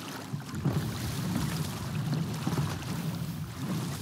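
Water splashes up loudly nearby.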